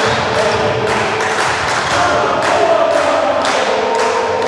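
A volleyball bounces on a hard floor.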